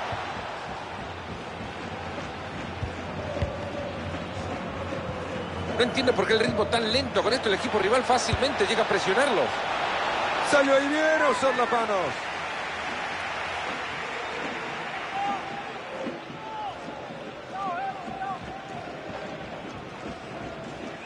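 A large crowd roars and cheers in a stadium, swelling loudly for a few seconds.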